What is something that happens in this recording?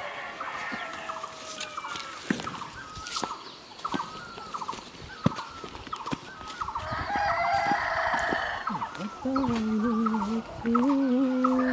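Footsteps crunch slowly on a dirt path.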